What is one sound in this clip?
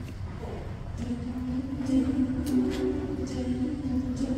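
A group of young women sings together in harmony in a hall.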